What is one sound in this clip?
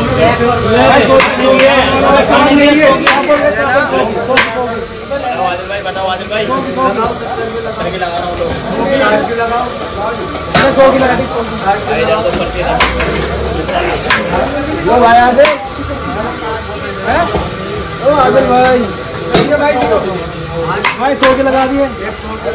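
Several men talk loudly and with animation close by.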